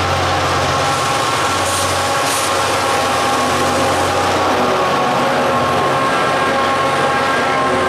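Diesel-electric locomotives rumble past under power.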